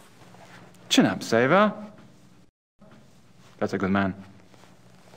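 An older man speaks in a formal, measured voice.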